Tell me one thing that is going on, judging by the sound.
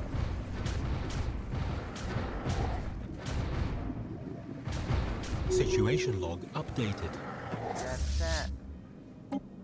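Sci-fi weapons fire and explosions rumble in a space battle.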